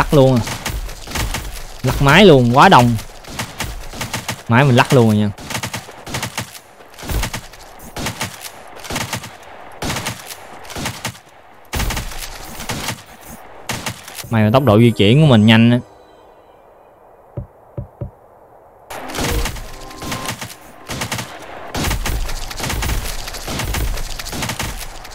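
Rapid video game gunshots and hits crackle.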